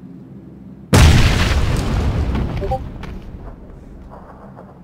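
A grenade explodes with a loud blast that rings out and fades.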